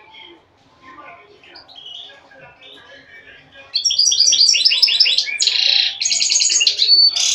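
A small bird sings a loud, rapid trilling song close by.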